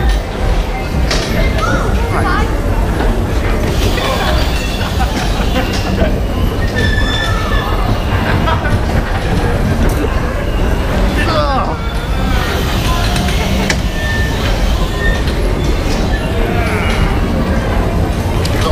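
Bumper car motors hum steadily in a large echoing hall.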